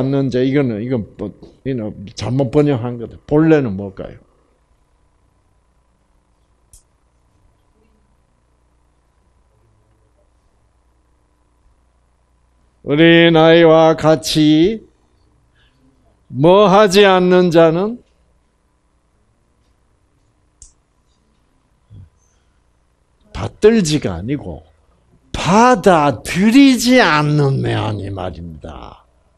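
An elderly man speaks with animation into a microphone, in bursts with long pauses.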